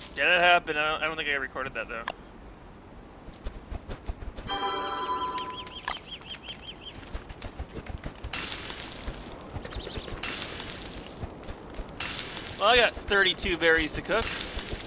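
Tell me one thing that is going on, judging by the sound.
A man talks with animation close to a headset microphone.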